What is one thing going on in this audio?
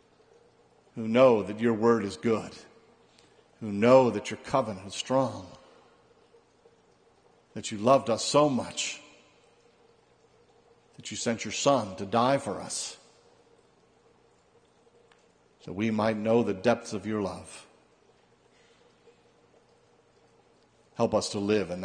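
A middle-aged man speaks slowly and calmly into a microphone, with long pauses between phrases.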